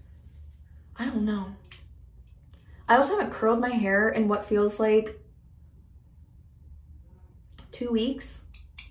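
A young woman talks calmly and close by, pausing between phrases.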